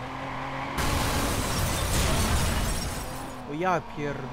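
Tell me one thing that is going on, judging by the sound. Car tyres screech and skid on the road.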